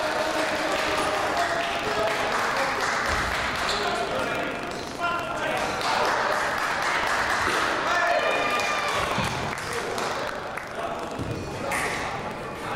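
Spectators murmur and chatter throughout a large echoing hall.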